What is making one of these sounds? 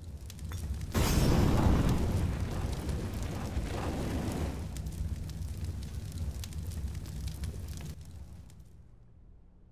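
Flames roar and crackle loudly close by, then die away.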